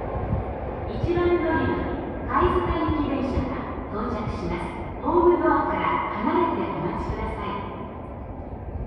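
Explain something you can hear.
Train wheels squeal on the rails in an echoing tunnel.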